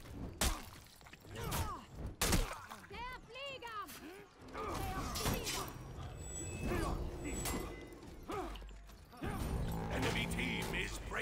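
Swords clash and strike armour in a fight.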